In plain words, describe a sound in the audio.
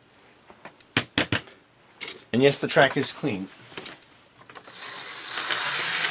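Plastic parts click and clatter as a toy train is set on its track.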